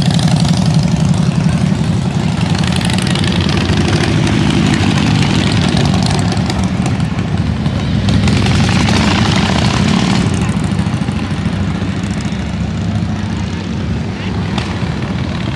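Motorcycle engines rumble loudly as bikes ride past one after another.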